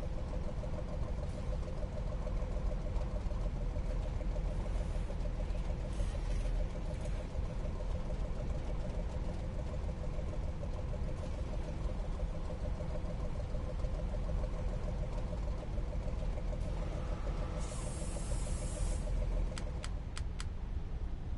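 A tank engine idles with a low, steady rumble.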